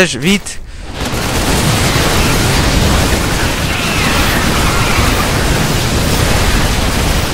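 Rapid gunfire rattles in a battle.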